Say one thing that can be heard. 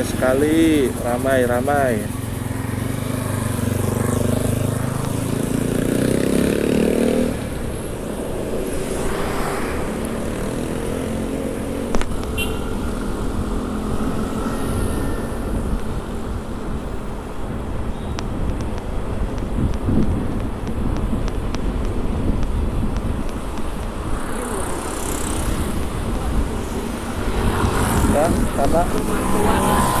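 A motorcycle engine hums and rumbles close by.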